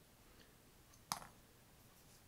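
Small metal parts click as an airbrush is taken apart.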